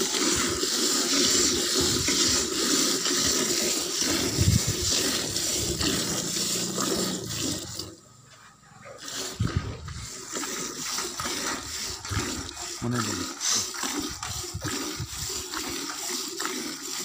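Jets of milk squirt and hiss into a metal pail in quick rhythm.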